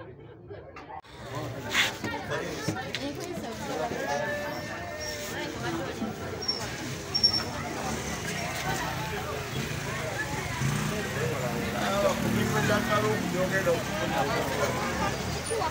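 A crowd chatters and calls out outdoors in a busy street.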